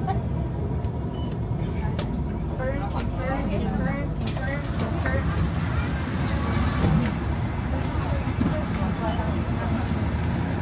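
A train rumbles steadily.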